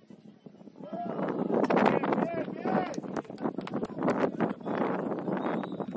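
A group of young men cheers loudly after a goal.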